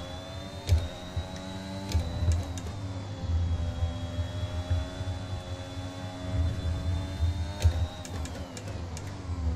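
A racing car engine whines at high revs, shifting gears up and down.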